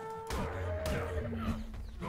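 Fists thump against a tree trunk.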